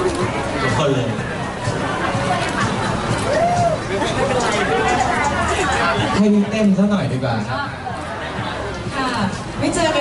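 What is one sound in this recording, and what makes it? A young man speaks cheerfully into a microphone over a loudspeaker.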